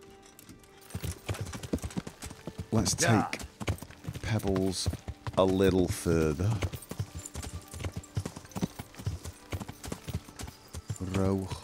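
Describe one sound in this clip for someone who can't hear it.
A horse gallops, its hooves thudding on the ground.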